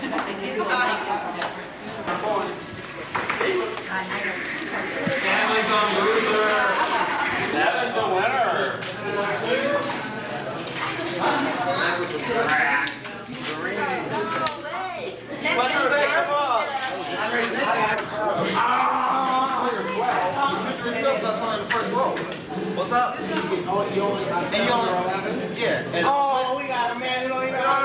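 A crowd of adult men and women chatters nearby in a large echoing room.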